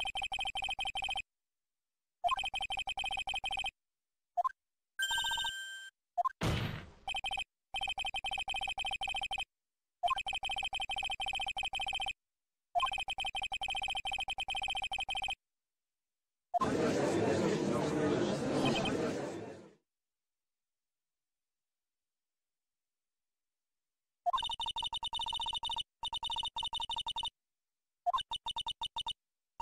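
Rapid electronic beeps chatter in short bursts.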